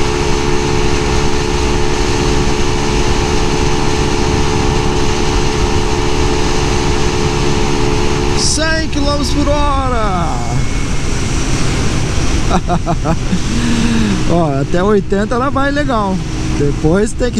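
A motorcycle engine drones steadily close by, then rises and falls in pitch.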